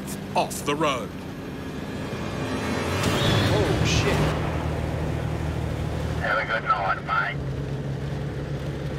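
Heavy truck engines rumble steadily.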